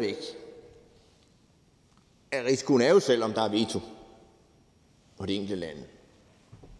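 A middle-aged man speaks calmly into a microphone, in short bursts.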